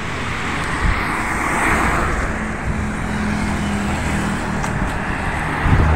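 Motorbikes pass by on a road.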